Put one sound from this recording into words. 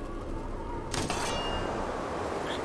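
A magical burst crackles with a sharp snap.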